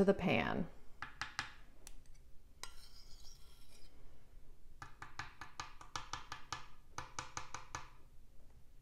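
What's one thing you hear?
A metal spoon scrapes and taps against a shallow metal dish.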